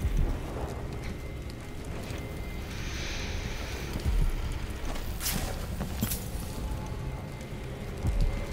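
A small fire crackles close by.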